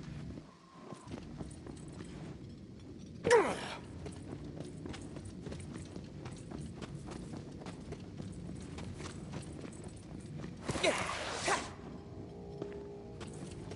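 Footsteps crunch steadily over snow and gravel.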